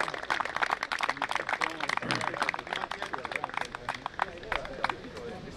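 A crowd of spectators claps and cheers.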